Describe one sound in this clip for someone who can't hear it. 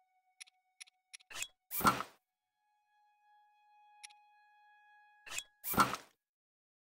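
Short sharp menu clicks sound several times.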